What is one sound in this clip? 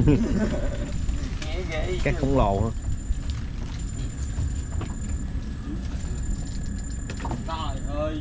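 Palm fronds rustle and scrape against a boat.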